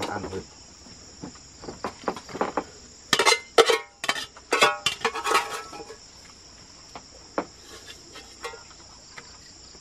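A metal spoon scrapes and clinks against a metal pot.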